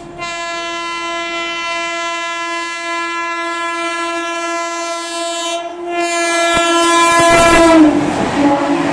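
An electric locomotive sounds a long horn that drops in pitch as it passes.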